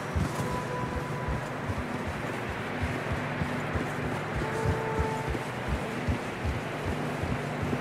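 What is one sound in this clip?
Horse hooves crunch through snow.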